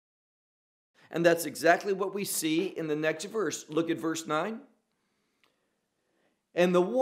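A middle-aged man reads aloud calmly, close to a microphone.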